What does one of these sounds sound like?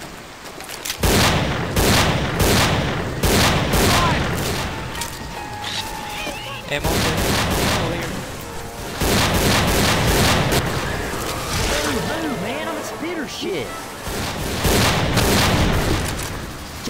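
A gun fires in rapid, loud bursts.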